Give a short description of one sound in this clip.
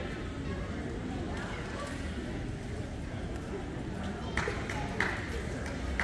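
Men and women chatter quietly in the distance in a large echoing hall.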